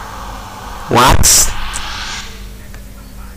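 A short burst of noise sounds as a cloud of smoke puffs up.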